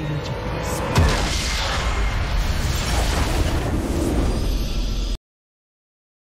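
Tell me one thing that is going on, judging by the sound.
A large crystal shatters in a loud, booming explosion that rumbles on.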